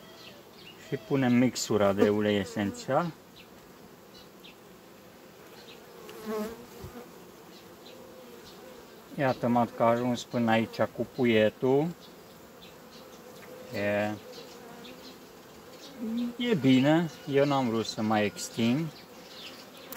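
A man speaks calmly close by, in short bursts.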